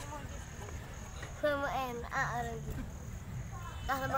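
A boy laughs loudly.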